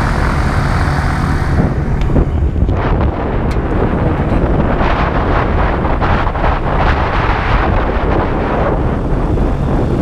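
Wind buffets past loudly.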